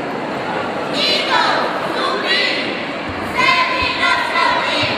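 A group of young cheerleaders shout in unison.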